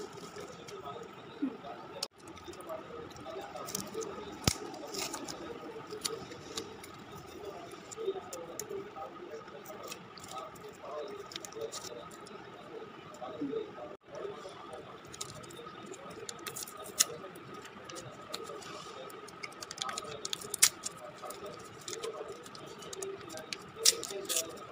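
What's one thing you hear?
Plastic candy wrappers crinkle and rustle as fingers handle them.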